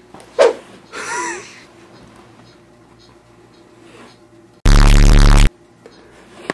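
A young woman groans loudly as she wakes.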